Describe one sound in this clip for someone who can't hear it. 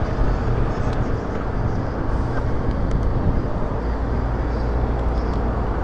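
A motorcycle engine idles with a low, steady rumble.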